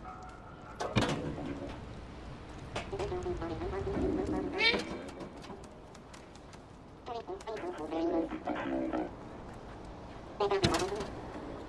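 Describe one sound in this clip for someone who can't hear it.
A cat lands with a soft thud after a jump.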